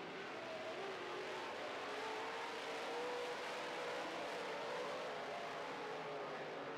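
Race car engines roar loudly.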